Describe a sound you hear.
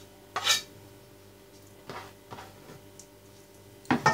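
A wooden board is set down with a knock.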